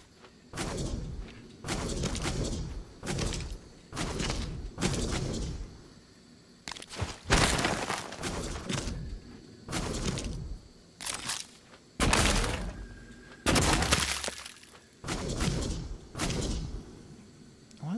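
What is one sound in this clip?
A gun fires in short, loud bursts.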